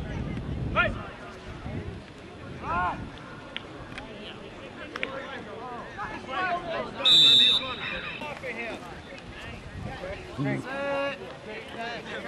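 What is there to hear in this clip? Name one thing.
A crowd of spectators shouts and cheers from a distance.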